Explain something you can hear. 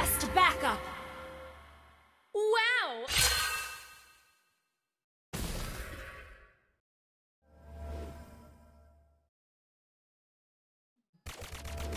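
Game sound effects whoosh and ring out in short bursts.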